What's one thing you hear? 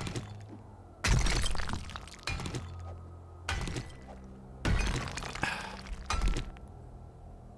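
A pickaxe strikes rock with heavy, crunching blows.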